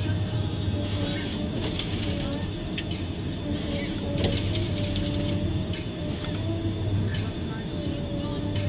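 A forestry machine's diesel engine rumbles steadily close by.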